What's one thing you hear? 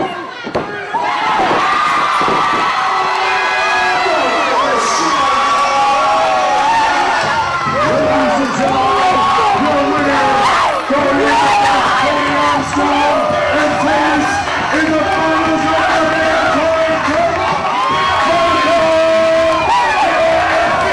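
A crowd cheers and chants loudly.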